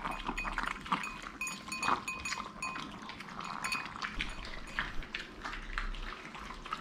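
Several small dogs lap and chew food noisily from bowls.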